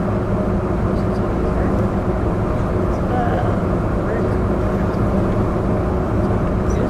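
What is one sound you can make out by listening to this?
A bus engine idles with a steady low rumble.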